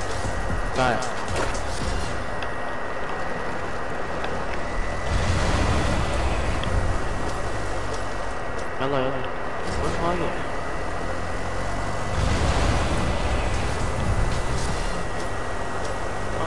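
A small off-road vehicle's engine roars and revs.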